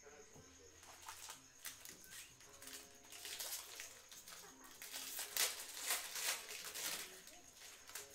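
Card wrappers rustle and crinkle in hands.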